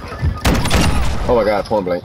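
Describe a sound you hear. Gunfire cracks in a quick burst.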